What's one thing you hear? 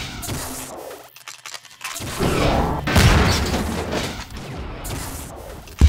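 Gunfire bursts rapidly from a game weapon.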